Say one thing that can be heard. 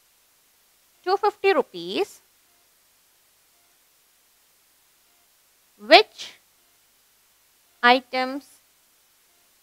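A woman speaks calmly and clearly into a close microphone, in short phrases.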